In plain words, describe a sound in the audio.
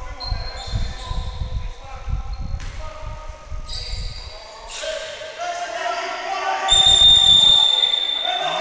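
A basketball bounces with dull, repeated thumps.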